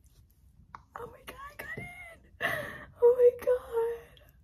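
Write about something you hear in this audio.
A young woman squeals and laughs with excitement.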